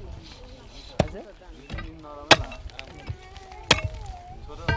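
A pickaxe strikes into hard, stony ground.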